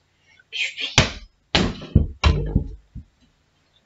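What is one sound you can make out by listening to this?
A ball thuds and bounces on the floor.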